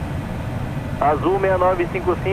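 A man speaks briefly over a headset intercom.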